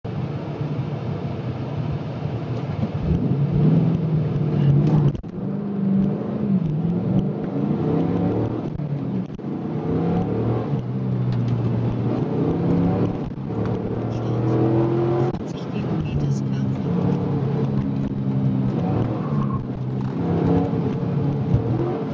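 A car engine revs hard and shifts through gears, heard from inside the car.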